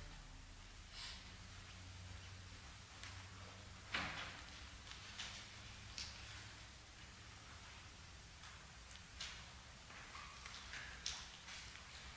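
Soft knocks and clicks come as a man handles objects.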